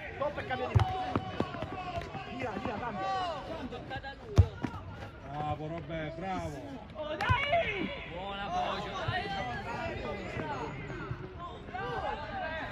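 Several men and boys shout and call out with animation nearby, outdoors.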